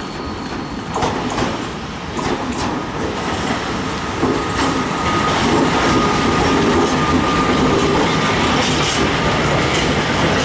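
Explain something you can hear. Train wheels clatter over rail joints and points.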